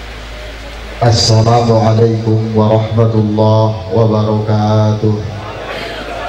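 A man sings loudly through a microphone and loudspeakers.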